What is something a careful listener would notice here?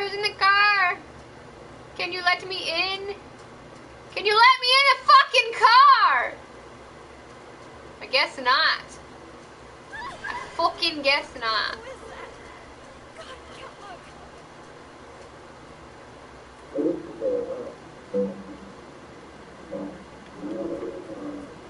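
A young woman talks with animation into a microphone, in bursts with short pauses.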